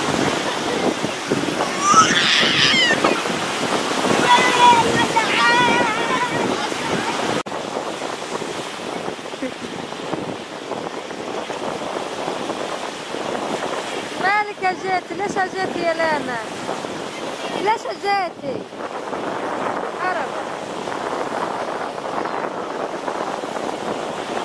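Waves wash and break on a shore.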